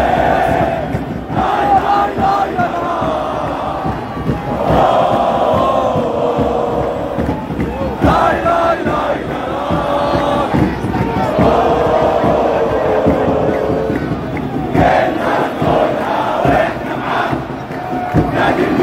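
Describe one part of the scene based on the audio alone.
A crowd cheers and whistles.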